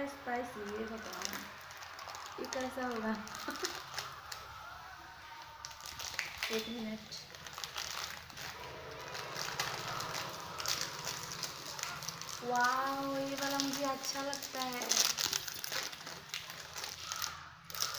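A plastic snack wrapper crinkles and rustles in hands.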